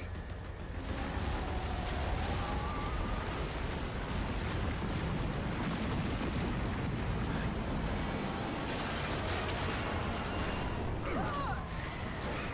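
A deep rumble of collapsing buildings and breaking ground rolls on.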